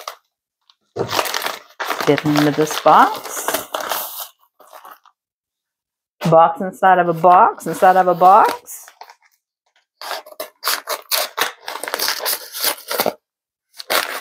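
A plastic mailer crinkles and rustles as hands open it.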